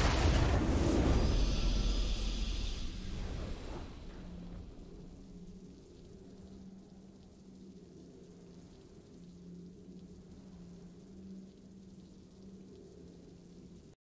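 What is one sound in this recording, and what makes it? A triumphant victory fanfare swells and then fades to a soft hum.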